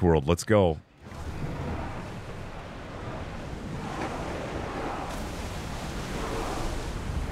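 Wind blows strongly.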